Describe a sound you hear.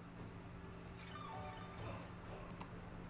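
A video game attack effect plays as a falling string of chimes.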